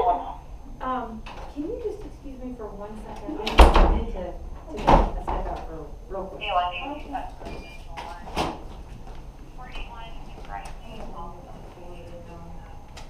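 A woman talks nearby in an echoing hall.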